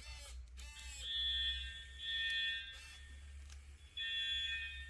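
An electronic buzzer sounds in short, steady, shrill bursts.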